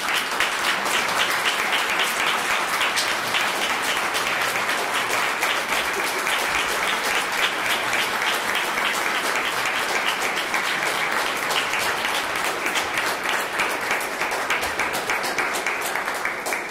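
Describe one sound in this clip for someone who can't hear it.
An audience claps loudly and steadily in a room.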